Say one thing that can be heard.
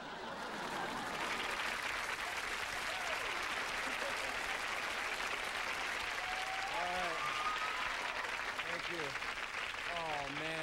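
A large audience claps and cheers loudly.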